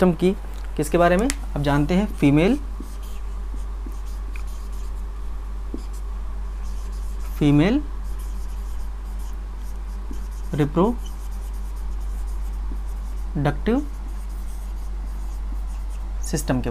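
A young man speaks in short bursts, close by, in a calm, explaining way.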